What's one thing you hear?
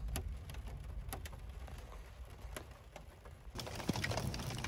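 Raindrops tap against a window pane.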